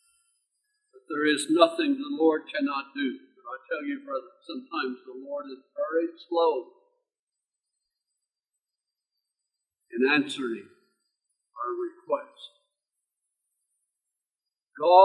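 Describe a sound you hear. An elderly man speaks slowly and earnestly into a microphone, with long pauses.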